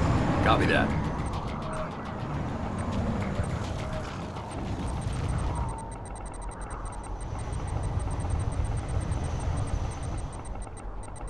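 Helicopter rotors drone and thud steadily.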